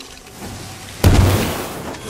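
A bomb explodes with a loud bang.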